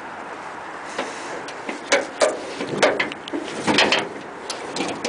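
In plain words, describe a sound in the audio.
A metal truck hood creaks and clanks as it is lifted open.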